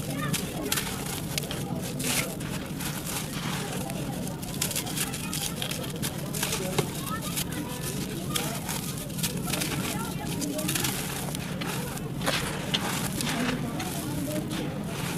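Dry, sandy soil crumbles and trickles from hands up close.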